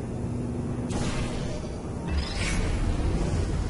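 A portal gun fires with a sharp electric whoosh.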